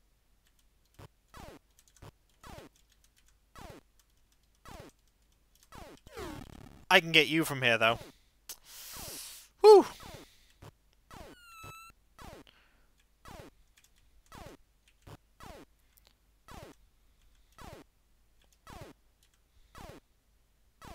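Short electronic bleeps from a retro video game repeat at an even pace.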